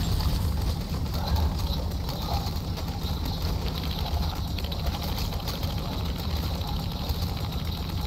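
Electric crackling zaps buzz around loudly.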